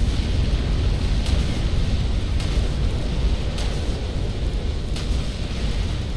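A shimmering energy effect whooshes and crackles.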